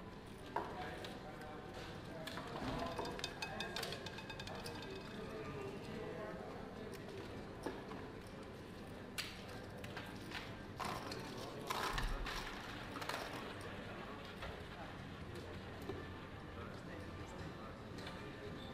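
Casino chips click and clatter as they are stacked and moved.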